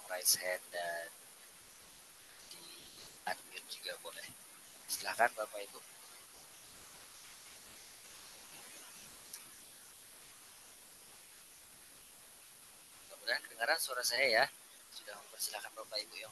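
A young man speaks casually through a headset microphone over an online call, with pauses.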